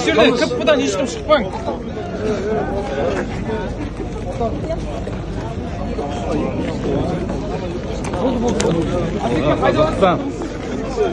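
A man speaks loudly close by.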